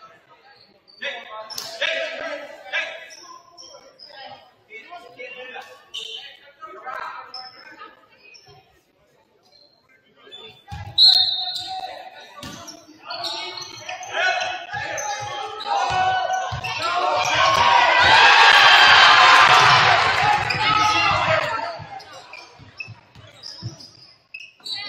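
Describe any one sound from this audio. Players shout to each other in an echoing gym.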